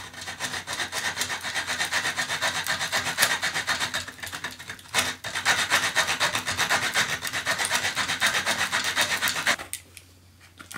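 A small saw rasps through wood in quick, steady strokes.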